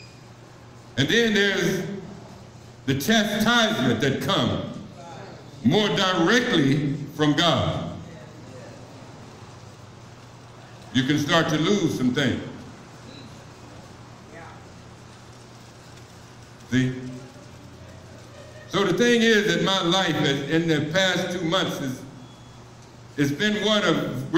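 A man speaks in bursts through a loudspeaker in a room with echo.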